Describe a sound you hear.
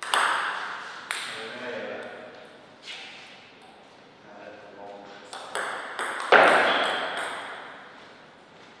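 A table tennis ball clicks sharply off paddles and the table in an echoing hall.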